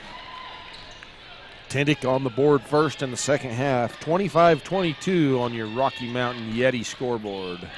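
A basketball bounces on a hardwood floor in a large echoing hall.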